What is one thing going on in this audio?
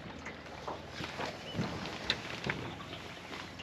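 A fish splashes at the surface close by.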